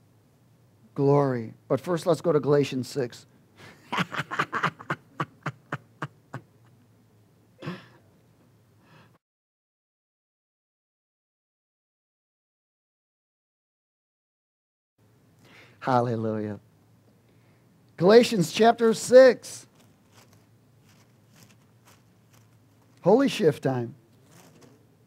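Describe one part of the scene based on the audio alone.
A middle-aged man speaks calmly through a microphone, in short phrases with long pauses.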